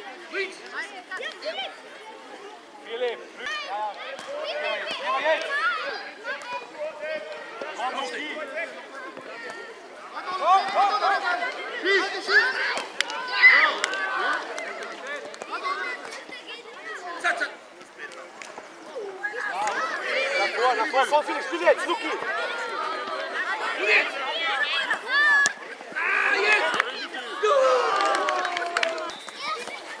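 Adult spectators call out from the sideline.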